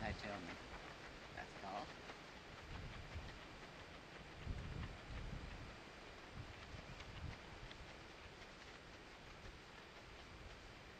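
Horse hooves clop steadily on gravel.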